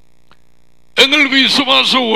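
A man speaks clearly into a close headset microphone.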